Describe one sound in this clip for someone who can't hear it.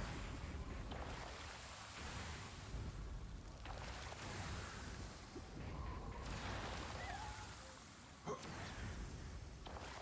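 Game spell effects crackle and chime.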